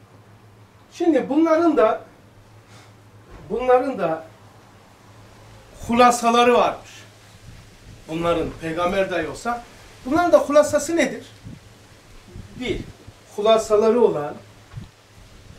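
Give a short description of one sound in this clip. An elderly man speaks calmly and clearly nearby, in pauses.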